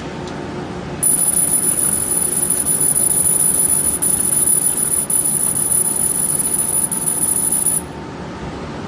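A laser cutter hisses and whines with a high, steady tone.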